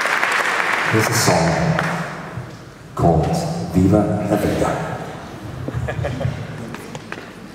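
A choir sings a short chord in a large hall.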